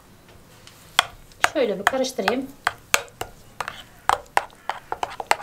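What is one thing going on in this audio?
A metal spoon stirs and clinks against a glass bowl.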